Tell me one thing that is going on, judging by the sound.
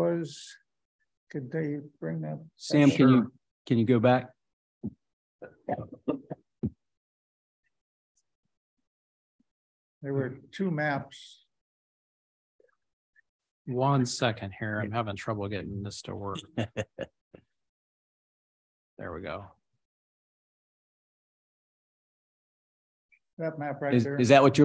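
A man speaks calmly into a microphone, heard through an online call, with pauses.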